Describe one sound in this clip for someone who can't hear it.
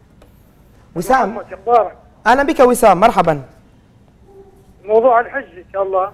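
A man speaks calmly and clearly into a microphone.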